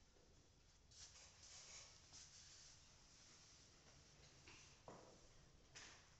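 A cloth rubs and wipes across a chalkboard.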